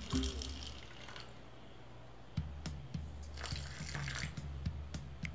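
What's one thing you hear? Small plastic beads rattle inside a plastic bottle.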